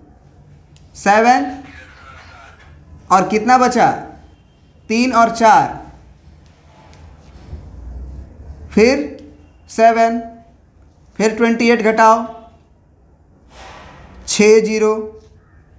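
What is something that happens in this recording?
A young man speaks loudly and clearly in short phrases, close by.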